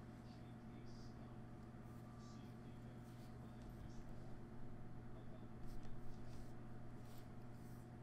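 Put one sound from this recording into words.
Plastic game pieces tap and slide softly on a cloth mat.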